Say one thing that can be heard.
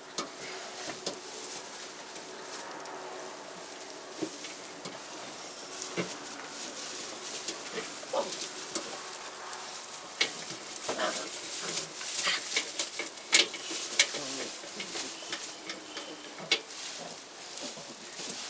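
Puppies whine and yip softly while playing.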